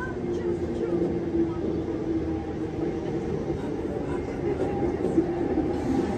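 A train approaches along the tracks with a steady rumble and a low whine.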